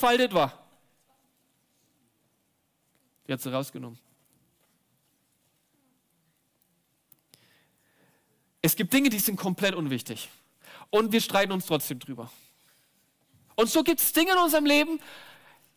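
A young man speaks with animation into a microphone, pausing between phrases.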